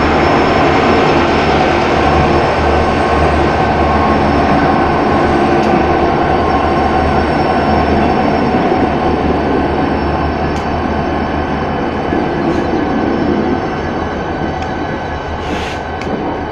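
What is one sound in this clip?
Diesel locomotive engines rumble loudly close by.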